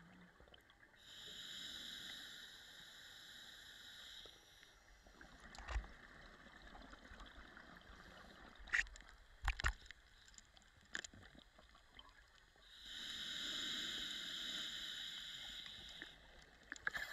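Scuba air bubbles rush and gurgle loudly close by, in long bursts.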